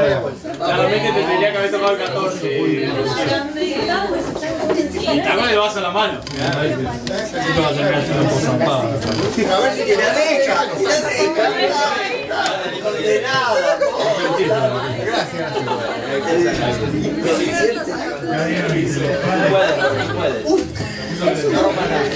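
A group of young adults chat and laugh together in a lively crowd.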